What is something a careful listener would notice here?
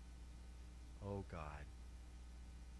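A middle-aged man speaks briefly through a microphone.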